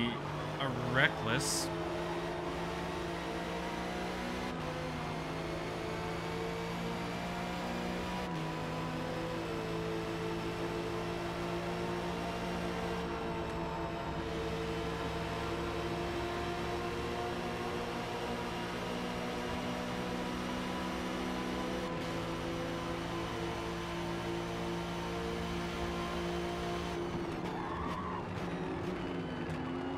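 A racing car engine roars steadily at high revs, shifting gears up and down.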